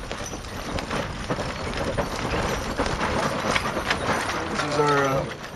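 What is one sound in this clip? Hooves clop on dirt.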